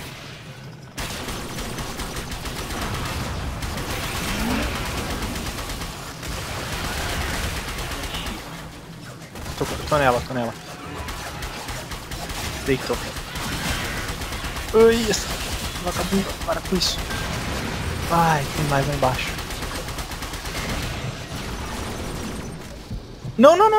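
Gunfire and blasts from a game ring out.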